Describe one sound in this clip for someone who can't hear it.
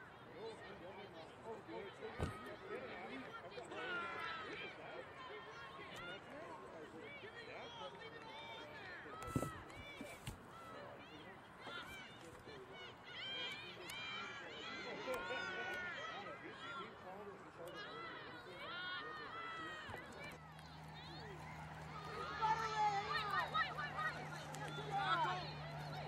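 Young women players shout to each other across the field.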